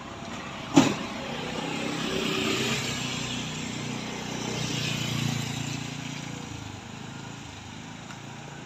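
A motorbike engine passes close by and fades.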